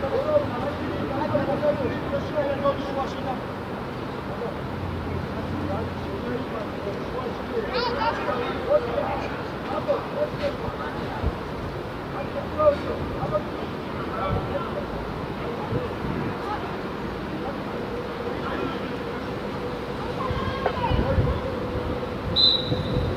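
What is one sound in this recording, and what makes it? Young players shout to each other across an open outdoor pitch.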